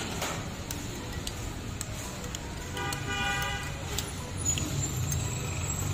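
A metal spoon clinks against a glass cup while stirring.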